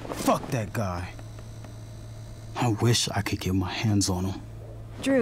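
A young man speaks angrily and upset, close by.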